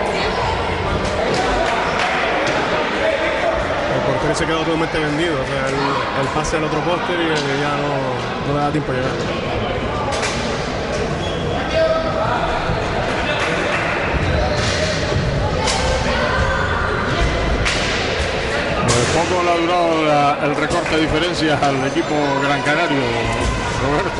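Roller skates roll across a wooden floor.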